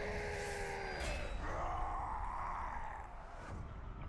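A magical energy surge roars and swells, then fades.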